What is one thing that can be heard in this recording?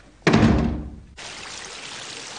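A waterfall rushes and splashes outdoors.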